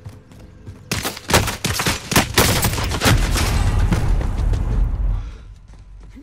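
Gunshots crack in rapid bursts close by.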